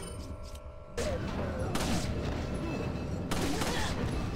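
Gunshots bang loudly, one after another.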